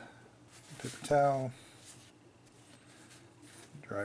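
A paper towel rustles and crinkles as a brush is wiped on it.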